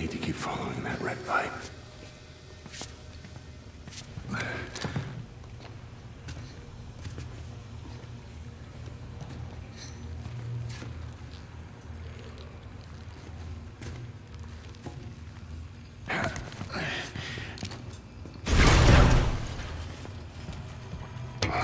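Footsteps clang on a metal floor.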